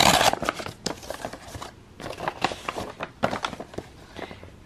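Paper rustles and crinkles as a card is pulled from an envelope.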